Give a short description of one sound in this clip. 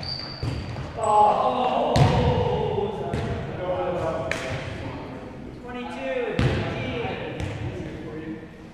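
Men call out to each other across a large echoing hall.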